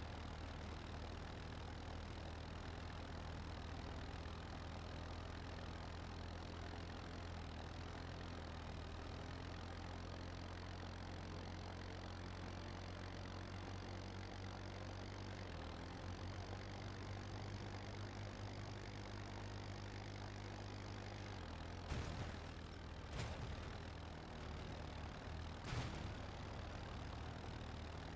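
A buggy's engine hums steadily as it drives.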